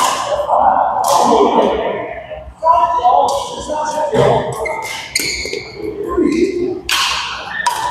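Men talk and call out in the echoing hall.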